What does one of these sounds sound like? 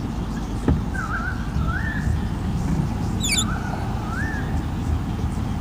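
A large bird gives short chirping calls from its nest.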